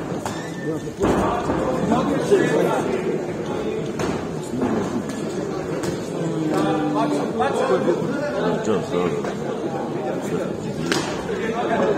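Boxing punches thud sharply on gloves and bodies.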